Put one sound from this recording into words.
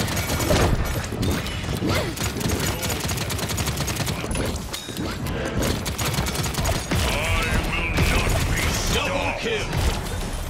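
Gunfire from a game weapon blasts rapidly.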